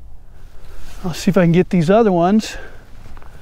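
A man speaks briefly outdoors.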